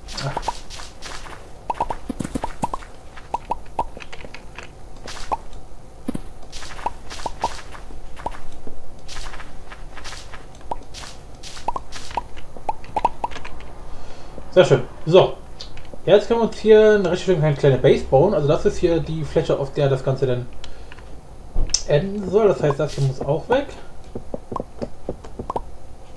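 Blocks crack and break in quick repeated clicks.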